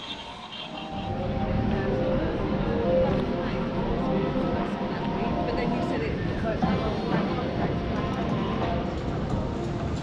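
Voices of people chatting nearby mingle in the open air.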